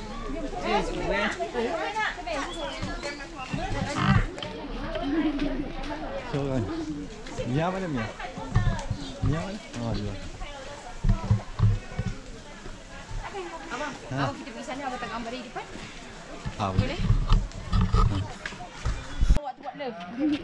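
A crowd of visitors chatters in the background.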